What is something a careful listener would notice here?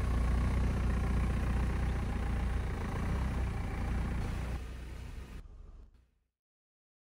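A car engine idles and rumbles as a car rolls slowly forward.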